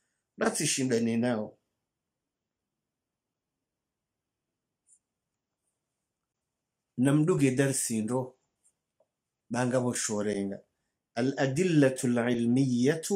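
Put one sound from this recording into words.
An elderly man speaks slowly and expressively, close to a microphone, with long pauses.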